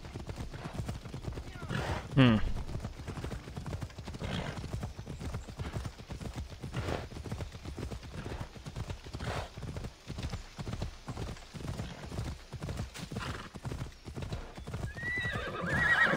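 Horse hooves clop steadily on the ground.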